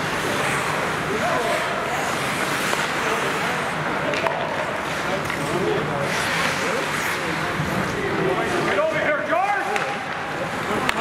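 Young men shout to each other in a large echoing rink.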